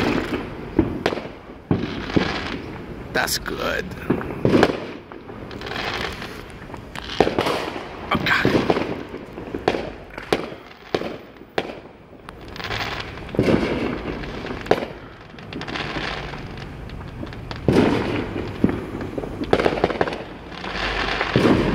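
Fireworks boom in the distance, outdoors.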